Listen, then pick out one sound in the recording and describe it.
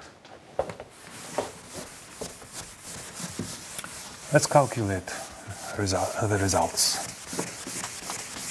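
A cloth eraser wipes across a board with a brushing sound.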